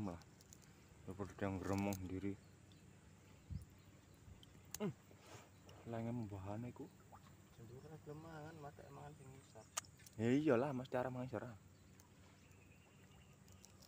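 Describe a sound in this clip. Hands dig in wet mud at a stream bank.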